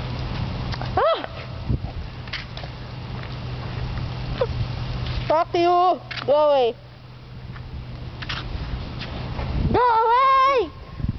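A young woman cries out in high, wailing bursts close by.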